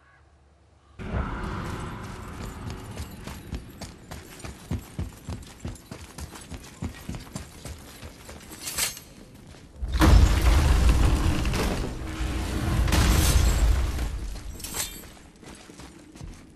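Heavy footsteps thud on a stone floor.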